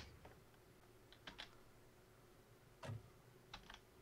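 A vehicle door shuts with a thud.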